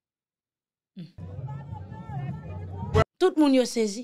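A crowd murmurs and chants outdoors.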